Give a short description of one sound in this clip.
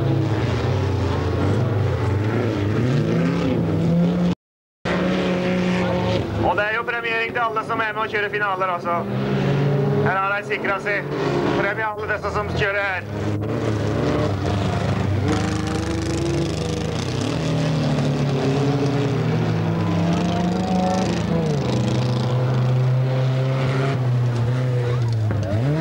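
Racing car engines roar and rev up and down.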